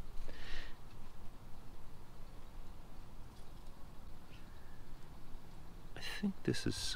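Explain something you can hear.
Small metal jewellery links clink faintly between fingers.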